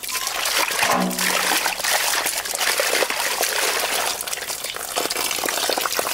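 Hands squish and slosh meat in water.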